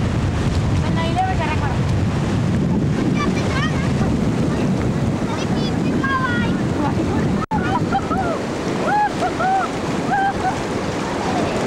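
A young girl calls out in a high, excited voice.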